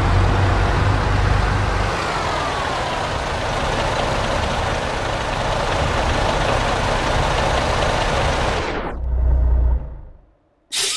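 A diesel truck engine idles with a deep, steady rumble, then cuts off.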